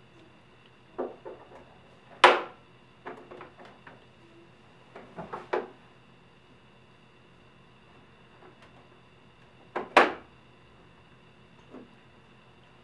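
Plastic toy parts knock and bang sharply.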